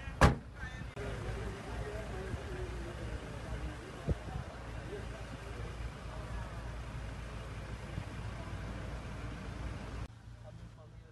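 Men murmur a prayer quietly outdoors.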